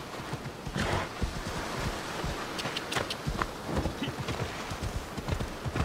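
Waves wash onto a shore.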